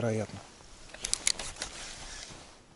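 A fishing reel clicks briefly.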